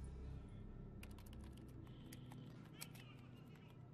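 Fingers tap and click on keys.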